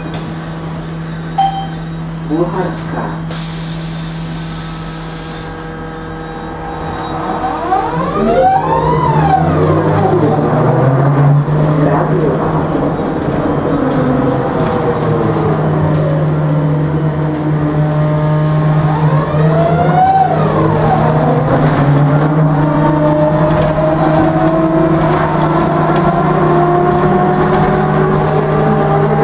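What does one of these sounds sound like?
A trolleybus motor hums and whines steadily, rising and falling in pitch as the bus moves.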